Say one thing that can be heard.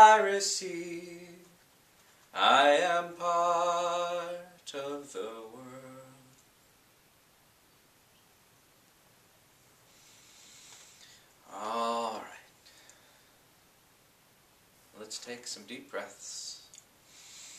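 A man speaks and chants expressively close by.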